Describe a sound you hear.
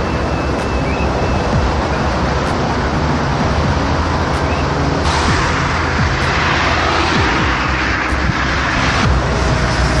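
Tyres roll over the road with a steady rumble.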